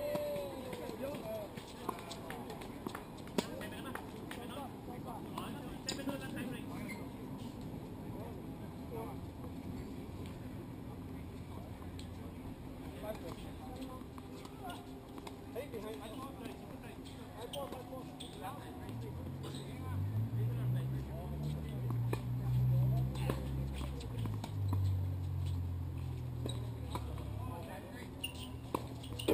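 Paddles hit a ball with sharp hollow pops outdoors.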